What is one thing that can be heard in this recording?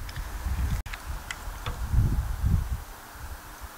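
A small metal tool clicks and scrapes against a metal rail.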